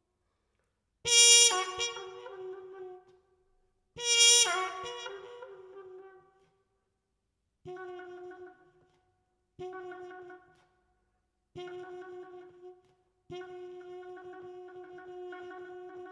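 A trumpet plays loud, bright blasts, then shorter held notes with pauses between them.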